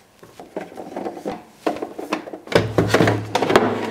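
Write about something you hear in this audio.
Plastic parts knock and rattle as a housing is pulled apart.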